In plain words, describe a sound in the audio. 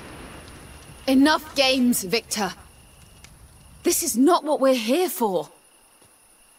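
A woman speaks coldly and firmly.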